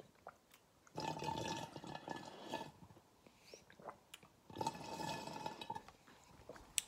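A man gulps water loudly.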